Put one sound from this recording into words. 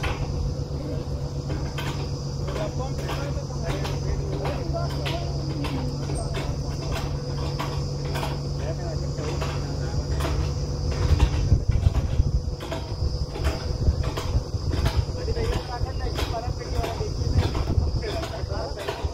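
A drill rig knocks rhythmically as it works.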